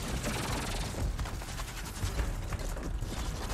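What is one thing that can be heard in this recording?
A huge beast roars.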